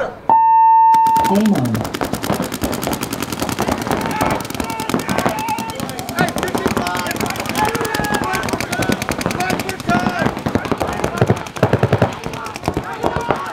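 A paintball marker fires rapid shots.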